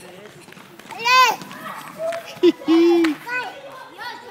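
A toddler squeals close by.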